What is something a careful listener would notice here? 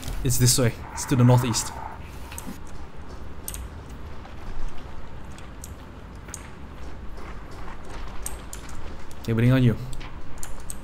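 Footsteps crunch and squelch on soft, wet ground.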